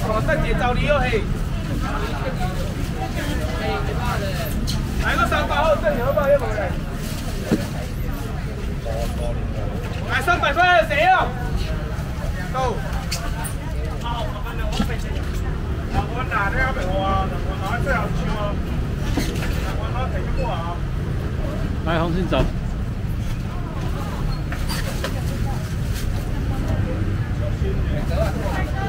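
A crowd murmurs and chatters all around.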